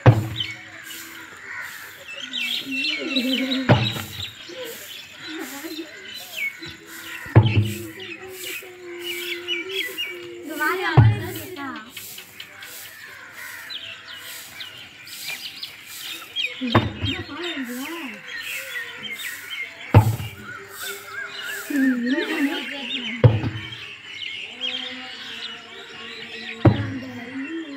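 A heavy tyre thuds down onto packed dirt again and again.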